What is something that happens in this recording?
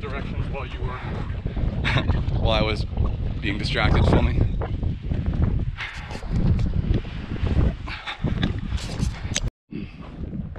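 Running footsteps crunch on a dirt trail.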